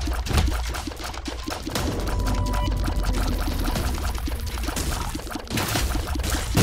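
Game music plays with a steady beat.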